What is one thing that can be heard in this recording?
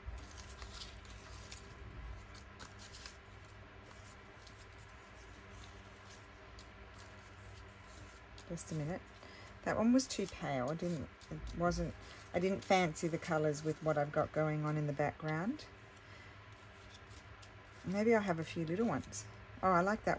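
Paper cutouts rustle and tap softly as a hand sorts through them in a plastic box.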